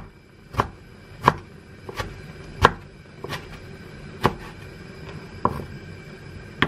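A knife chops on a wooden cutting board.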